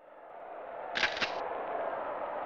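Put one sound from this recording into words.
A short electronic beep sounds.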